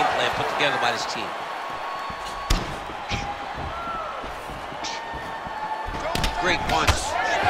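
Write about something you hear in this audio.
A crowd cheers and whistles in a large arena.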